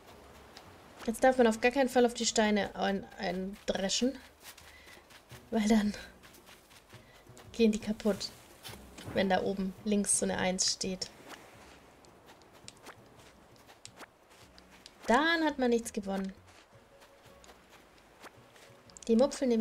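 A young woman talks with animation close to a microphone, in bursts with pauses.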